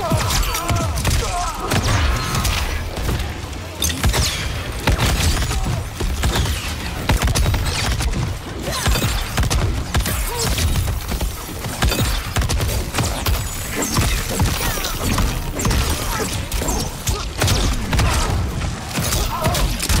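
Punches, kicks and blasts from a fighting game hit hard and fast.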